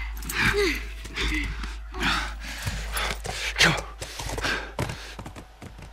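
A horse snorts and whinnies close by.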